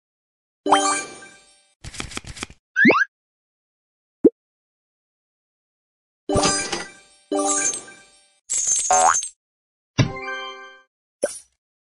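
Bright game chimes ring out in short bursts.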